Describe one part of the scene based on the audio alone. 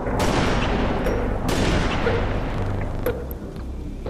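A sniper rifle fires a loud shot that echoes away.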